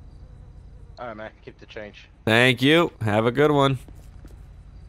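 A man speaks through a microphone in short bursts.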